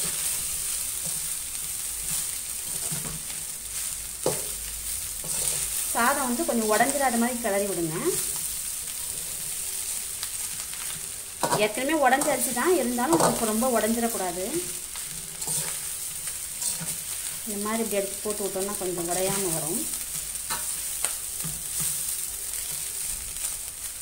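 A metal spatula scrapes and stirs rice in a metal pot.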